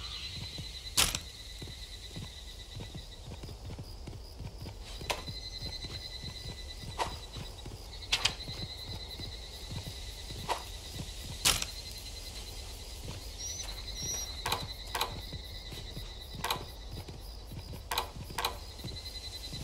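Short interface clicks and chimes sound now and then.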